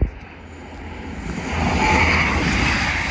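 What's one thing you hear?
A high-speed train approaches and roars past with a rising rush.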